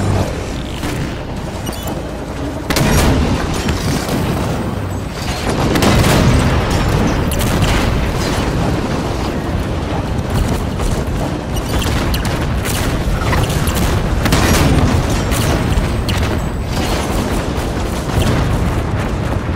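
A heavy engine rumbles steadily.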